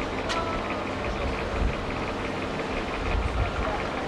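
Footsteps thud onto a boat's roof.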